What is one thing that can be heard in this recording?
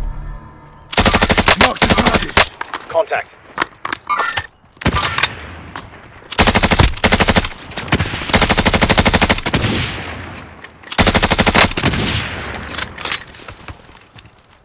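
Rapid bursts of automatic gunfire crack loudly.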